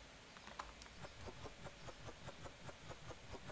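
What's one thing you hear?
Small boxes click softly into place one after another.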